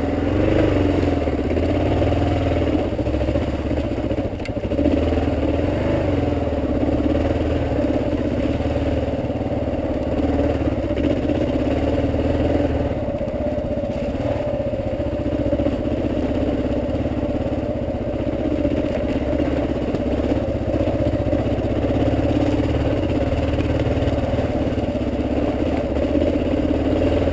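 Tyres crunch over gravel and rocks.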